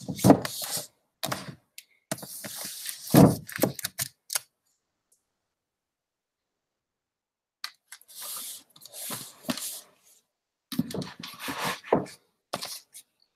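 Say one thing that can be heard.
Books scrape and bump as they are handled on a shelf.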